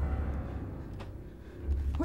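A doorknob rattles as a hand turns it.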